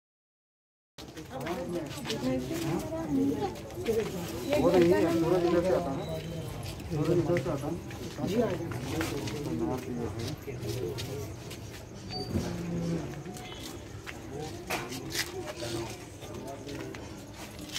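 Several men talk quietly nearby outdoors.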